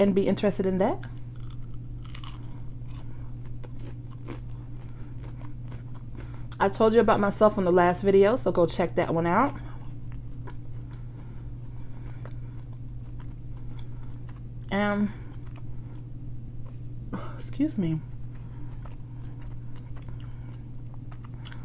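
A woman crunches and chews food close to a microphone.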